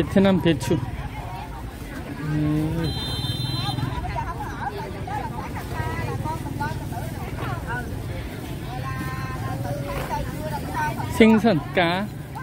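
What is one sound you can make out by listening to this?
A busy outdoor market murmurs with many voices nearby.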